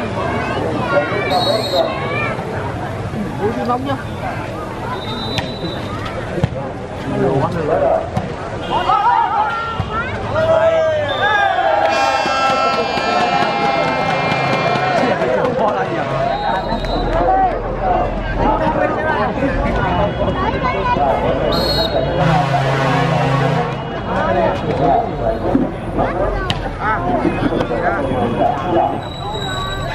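A large outdoor crowd chatters and cheers throughout.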